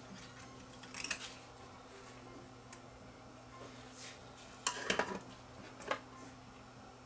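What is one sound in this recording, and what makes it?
Small metal parts clink and rattle under a hand.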